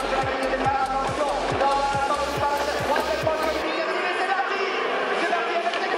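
Rally car engines rev loudly.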